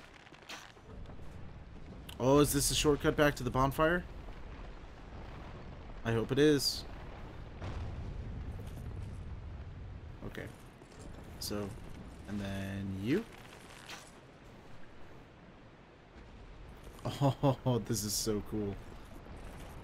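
Armored footsteps clank on stone.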